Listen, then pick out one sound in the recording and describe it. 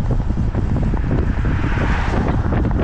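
A car passes by on the road.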